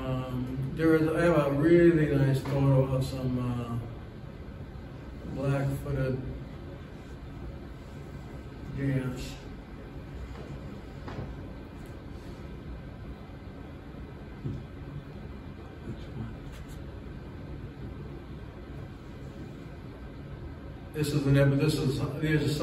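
An elderly man speaks calmly in a room with a slight echo, pausing between phrases.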